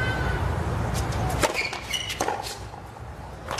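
A tennis ball is struck sharply with a racket several times.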